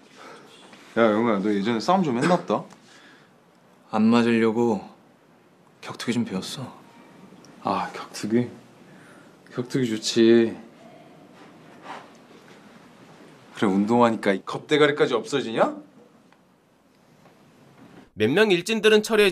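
Another young man answers tensely, close by.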